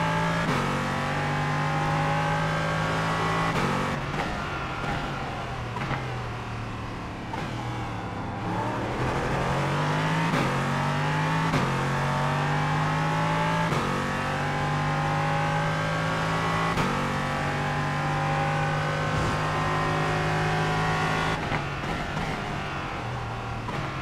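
A race car engine roars steadily, shifting gears up and down.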